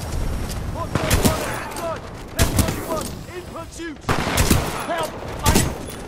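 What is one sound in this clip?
Guns fire in sharp, quick bursts.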